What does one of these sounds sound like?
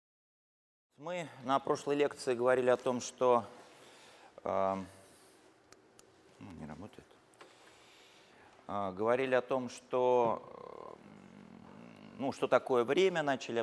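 A man speaks calmly into a microphone in a large echoing room.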